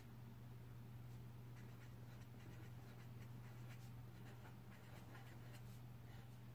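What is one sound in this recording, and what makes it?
A pen scratches softly across paper in short strokes.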